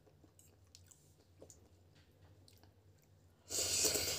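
A woman slurps and chews noodles close by.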